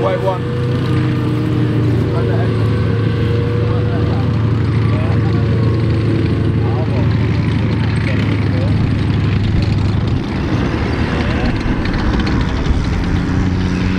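A tank engine rumbles and roars steadily nearby.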